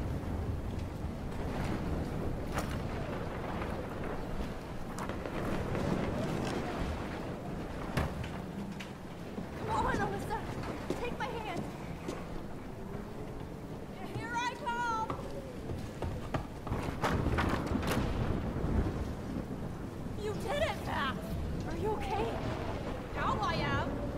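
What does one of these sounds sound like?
Heavy rain pours down in a strong wind.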